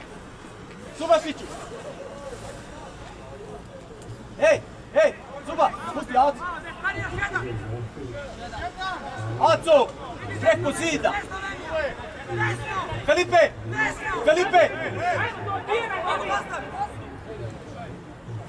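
Players shout to each other across an open outdoor field.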